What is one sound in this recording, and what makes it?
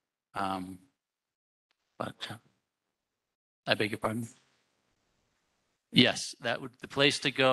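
A man speaks into a microphone in bursts, with pauses between phrases.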